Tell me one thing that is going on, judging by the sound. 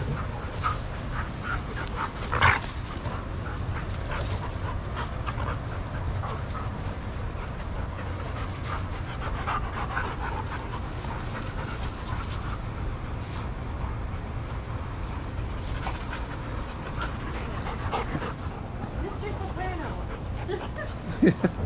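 Several dogs' paws scuffle on sandy ground.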